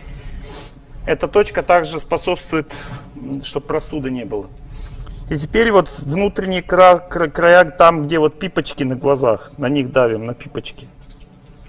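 A middle-aged man speaks calmly and slowly into a microphone.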